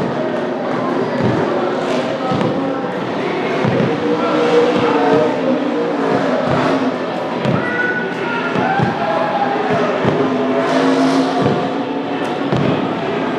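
A crowd cheers and shouts loudly nearby.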